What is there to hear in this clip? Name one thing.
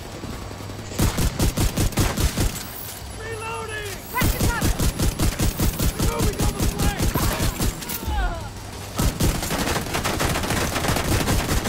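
Automatic rifles fire in rapid bursts close by.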